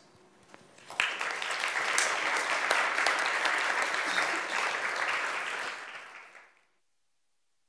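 An audience applauds and then fades out.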